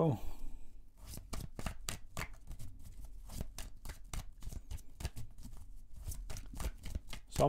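Playing cards are riffle shuffled with rapid crisp clicks.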